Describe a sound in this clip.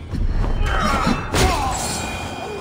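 A sword strikes with a loud crackling burst.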